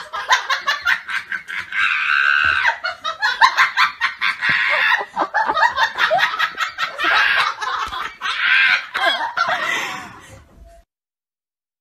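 Puppies whine and yelp.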